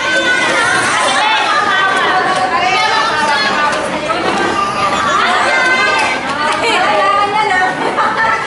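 A woman speaks with animation close by, over a noisy room.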